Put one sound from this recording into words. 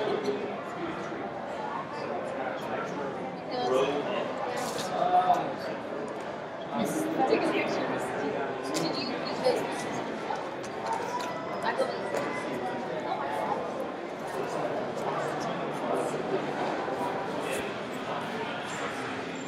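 Many people chatter indistinctly in a large, echoing hall.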